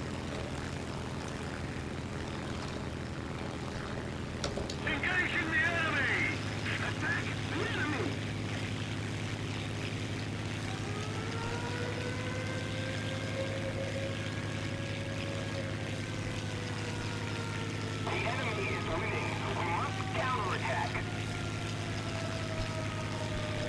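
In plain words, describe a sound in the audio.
A propeller engine drones steadily.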